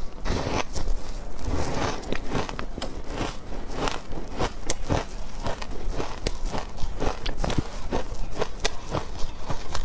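A young woman chews soft food close to a microphone, with wet smacking sounds.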